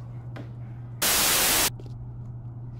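Static hisses loudly for a moment.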